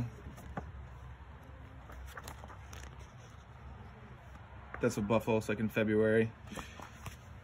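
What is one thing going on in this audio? Stiff pages of a large book rustle as they turn.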